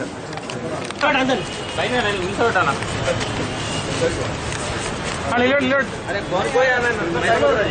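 Several men talk loudly in a jostling crowd nearby.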